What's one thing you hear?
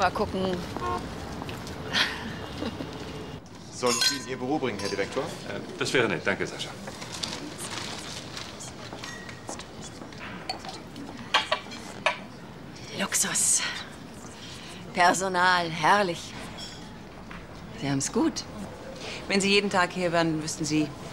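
A middle-aged woman speaks calmly up close.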